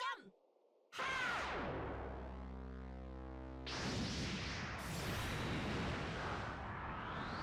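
A bright burst of roaring energy whooshes and swells.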